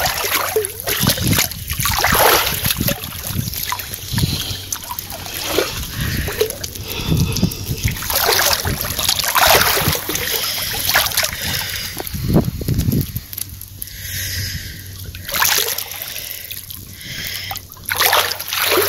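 Water sloshes and splashes in a small above-ground pool as a hand and leg stir it.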